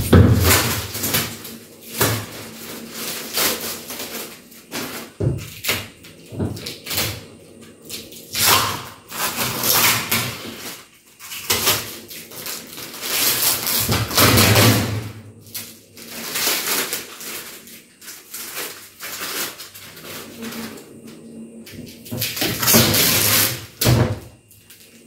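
Plastic parts knock and clatter.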